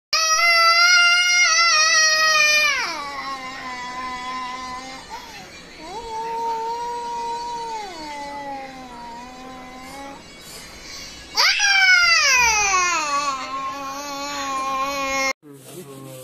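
A small child sings long, drawn-out notes loudly and close by.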